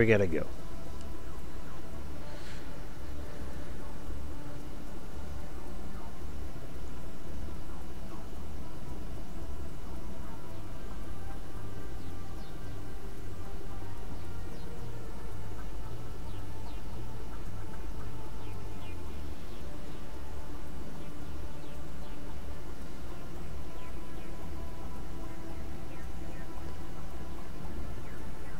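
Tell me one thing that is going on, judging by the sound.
A vehicle engine hums steadily at idle.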